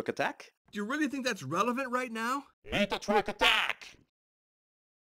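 A young boy shouts angrily.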